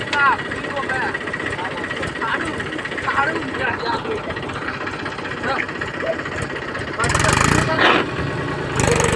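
A tractor's rear wheel churns through deep mud.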